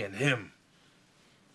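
A man speaks a few words briefly, close by.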